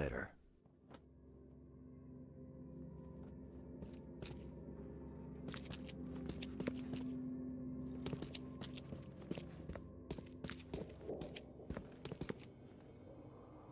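Footsteps walk across a hard tiled floor.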